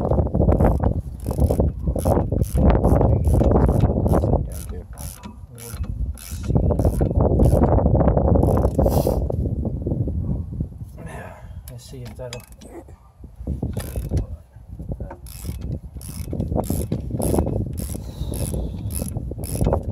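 A ratchet wrench clicks as it turns a nut.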